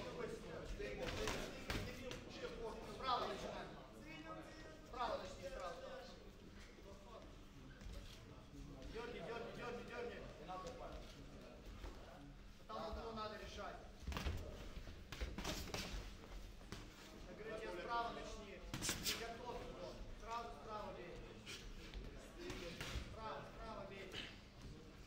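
Boxing gloves thud against bodies and gloves in quick bursts.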